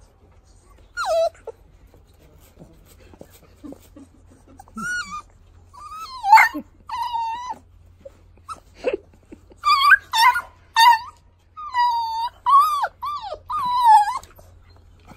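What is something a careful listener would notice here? Puppies whine and yelp in high, thin voices close by.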